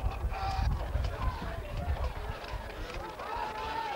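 Football players' pads clack as they collide at the snap.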